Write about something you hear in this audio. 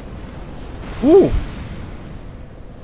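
A burst of fire roars up and crackles.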